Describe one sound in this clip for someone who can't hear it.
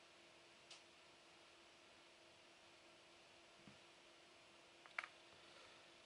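Puzzle pieces click softly as a hand picks through them on a table.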